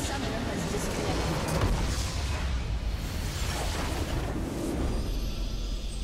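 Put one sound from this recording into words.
A loud game explosion booms and crackles.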